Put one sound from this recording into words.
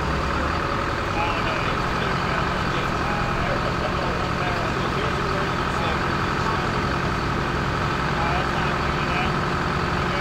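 A large diesel engine idles with a steady low rumble.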